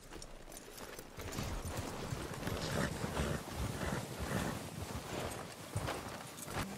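Horses trudge through deep snow.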